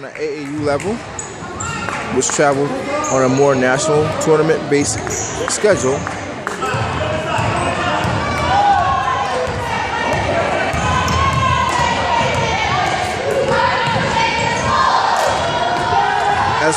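Spectators nearby talk and cheer in an echoing gym.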